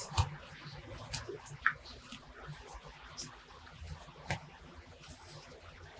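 Leaves rustle softly as fingers pluck them from a small plant.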